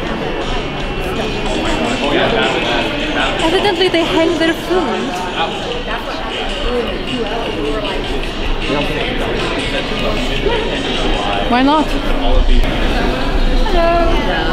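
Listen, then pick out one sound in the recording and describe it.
A crowd murmurs and chatters throughout a large hall.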